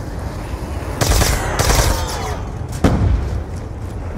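Gunfire bursts loudly from a rifle.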